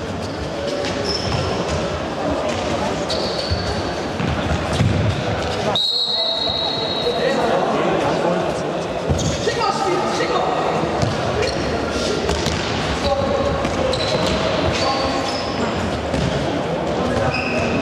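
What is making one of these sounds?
A ball thumps off a foot and bounces on the floor.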